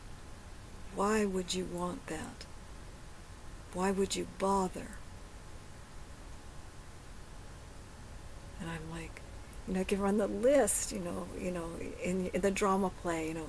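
A woman speaks calmly and close to a microphone, pausing between phrases.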